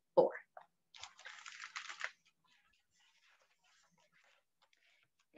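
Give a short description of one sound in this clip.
Paper pages rustle as a book is turned.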